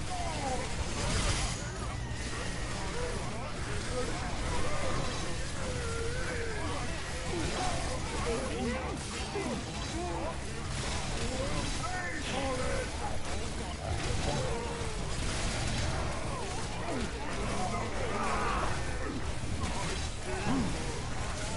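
Magic blasts and impacts crackle from a game.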